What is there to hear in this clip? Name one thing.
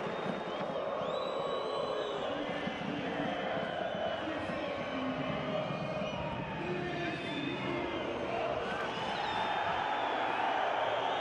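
A large stadium crowd chants and sings loudly throughout.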